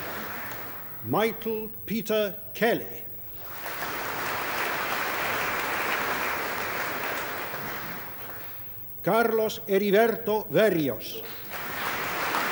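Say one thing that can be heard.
A man reads out names over a loudspeaker in a large echoing hall.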